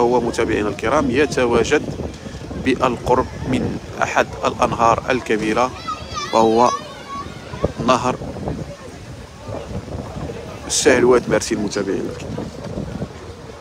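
Children talk and call out nearby, outdoors.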